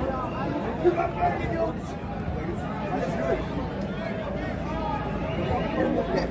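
A crowd of men and women murmurs and talks outdoors.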